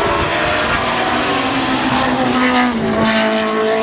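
A racing car engine roars loudly as it passes close by.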